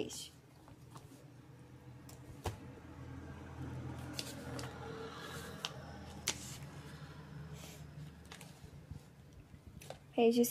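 Paper pages rustle and slide as a hand turns them.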